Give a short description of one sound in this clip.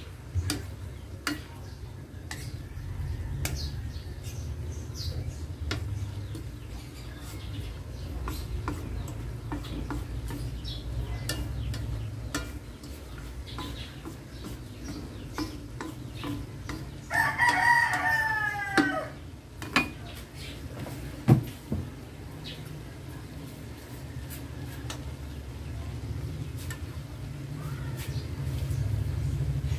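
Food sizzles softly in a pan.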